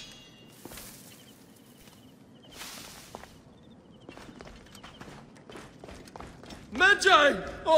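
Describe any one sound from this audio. Footsteps scuff over rocky ground.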